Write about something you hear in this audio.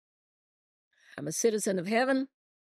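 An older woman speaks calmly into a microphone.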